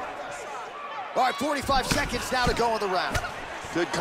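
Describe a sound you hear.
A punch thuds sharply.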